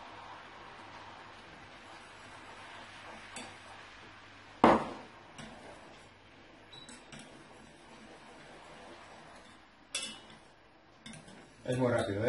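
A spoon clinks and scrapes against a metal pot while stirring.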